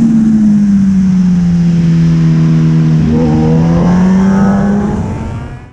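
A motorcycle engine drones steadily, dips in pitch, then rises and fades away.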